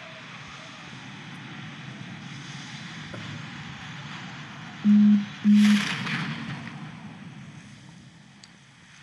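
Wind rushes loudly past a falling parachutist and slowly fades.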